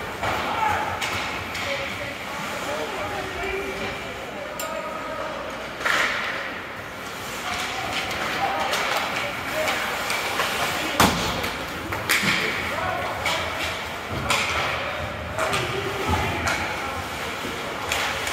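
Hockey sticks clack sharply against the puck and the ice.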